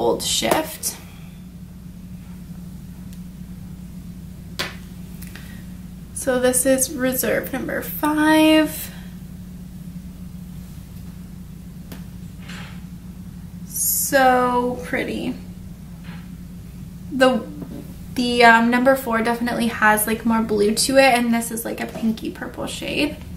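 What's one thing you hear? A young woman talks calmly and close to a microphone, in bursts with pauses.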